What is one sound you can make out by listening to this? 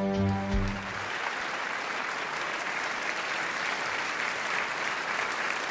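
An audience applauds in a large echoing hall.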